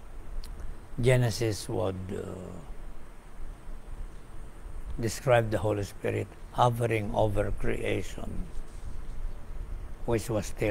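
An elderly man speaks calmly into a microphone, in pauses.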